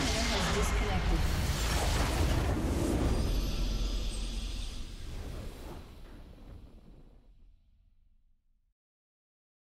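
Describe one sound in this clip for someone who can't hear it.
A triumphant victory fanfare swells and fades away.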